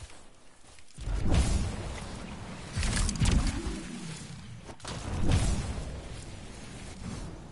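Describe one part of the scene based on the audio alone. Jet thrusters roar in loud bursts.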